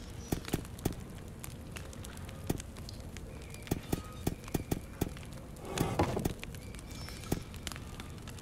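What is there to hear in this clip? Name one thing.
Stone buttons click as they are pressed.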